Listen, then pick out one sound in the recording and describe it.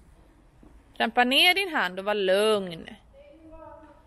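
A child calls out close by.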